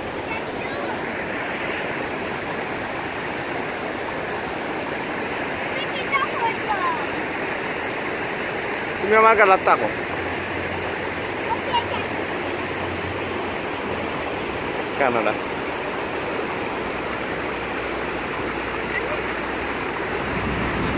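Choppy river water splashes steadily outdoors in the wind.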